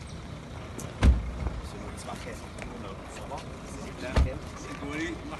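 A car door thumps shut nearby.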